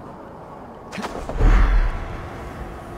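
A heavy thud lands on the ground.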